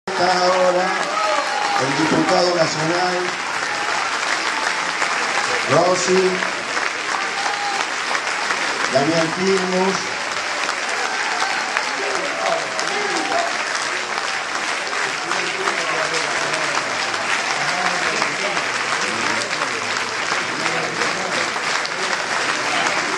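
A large crowd claps steadily and loudly in a big echoing hall.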